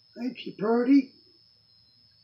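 A man speaks briefly and with animation, close by.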